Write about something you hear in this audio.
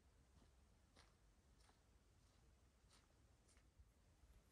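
Footsteps tread softly across grass outdoors.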